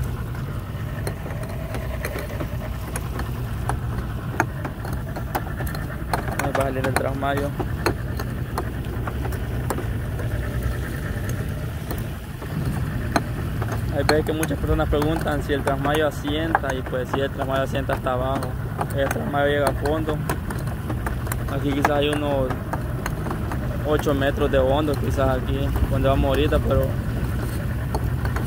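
A boat's outboard motor drones steadily.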